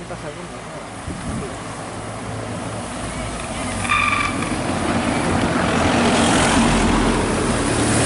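A pack of racing bicycles whirs past close by.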